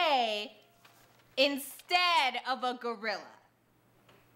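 A young woman speaks with animation.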